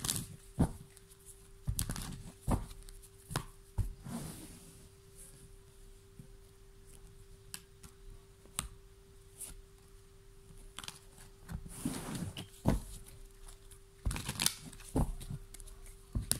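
Cards in a deck rustle and shuffle between fingers.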